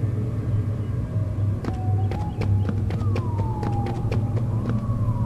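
A low electric hum drones steadily.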